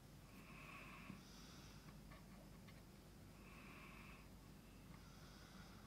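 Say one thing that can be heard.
A thin metal pick scratches and clicks inside a lock.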